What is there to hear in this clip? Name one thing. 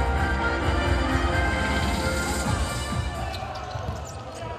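A large indoor crowd cheers loudly in an echoing hall.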